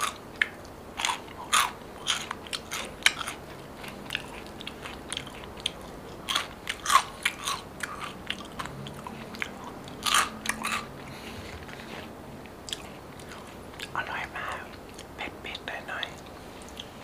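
A young man chews crunchy food close to a microphone.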